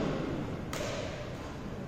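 A shuttlecock is struck sharply with a racket in a large echoing hall.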